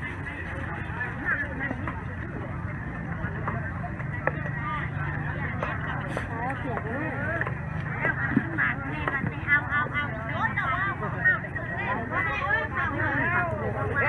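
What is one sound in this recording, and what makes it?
Women and men chatter nearby in a busy outdoor crowd.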